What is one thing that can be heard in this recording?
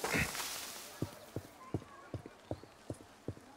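Footsteps run quickly up stone steps.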